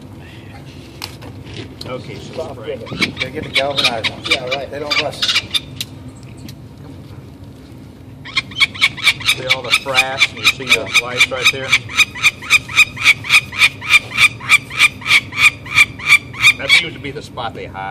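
A falcon chick screeches in rapid, repeated cries.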